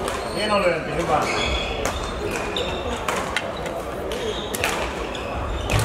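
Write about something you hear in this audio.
Sports shoes squeak on a hard floor.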